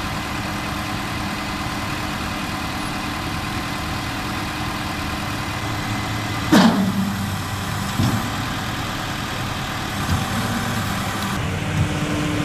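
A truck engine idles nearby with a steady low rumble.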